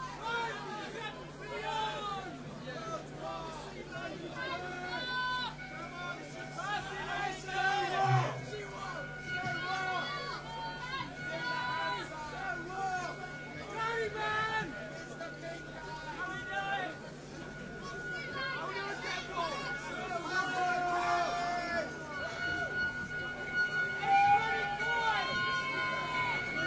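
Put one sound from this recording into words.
An electric guitar plays a melody.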